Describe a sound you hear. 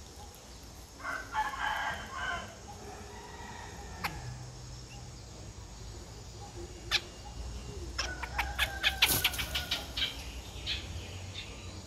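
Nestlings chirp rapidly and shrilly, begging for food close by.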